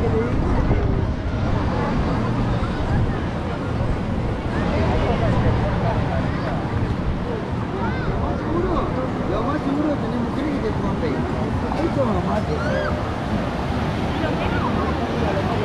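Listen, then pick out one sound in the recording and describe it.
A crowd of people chatter and call out all around, outdoors.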